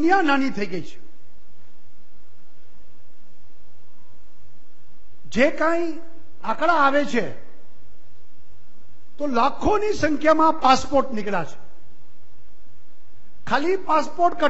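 A middle-aged man speaks forcefully into a microphone, with long pauses between phrases.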